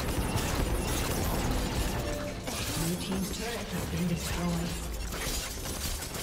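Spell effects crackle and blast in a game fight.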